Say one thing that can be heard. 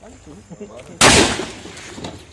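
A shotgun fires a single loud blast outdoors.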